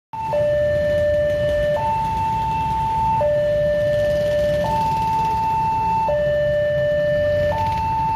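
A railway crossing warning signal sounds in a steady alternating two-tone pattern.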